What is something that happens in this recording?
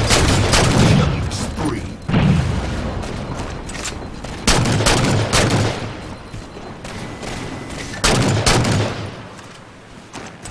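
Sniper rifle shots boom loudly, each followed by a rolling echo.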